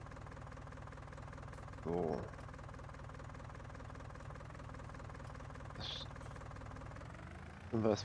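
A tractor engine hums steadily as the tractor drives along.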